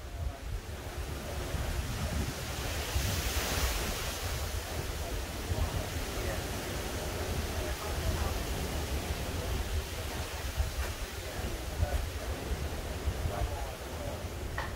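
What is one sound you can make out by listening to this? Wind gusts outdoors, buffeting and rustling through tree leaves.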